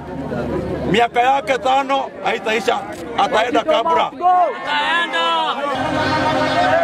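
A middle-aged man speaks loudly and forcefully into a microphone outdoors.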